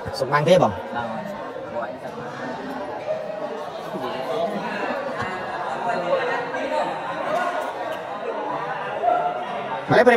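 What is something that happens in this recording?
A crowd chatters loudly in a large echoing hall.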